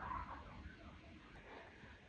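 Nut pieces drop and clatter into a wooden bowl.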